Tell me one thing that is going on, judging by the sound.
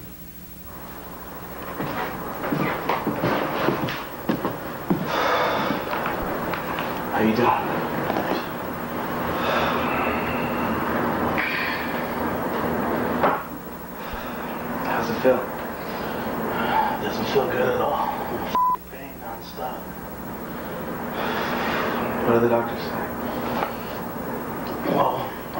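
A second man answers in a deep, relaxed voice.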